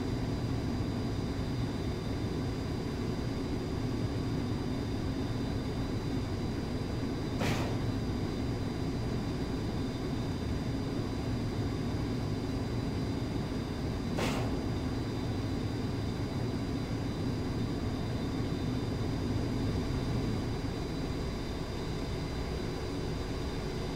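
A jet engine drones steadily throughout.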